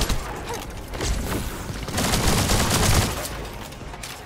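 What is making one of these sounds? Video game energy blasts and bursts crackle during a fight.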